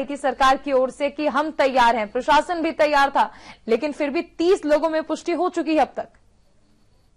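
A young woman speaks clearly and steadily into a microphone.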